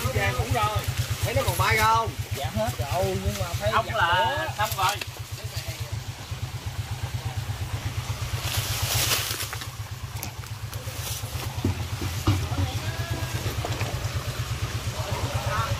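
Dry leaves and twigs rustle underfoot.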